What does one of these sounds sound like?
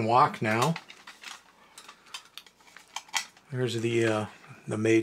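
A metal toy robot clicks and knocks as it is handled.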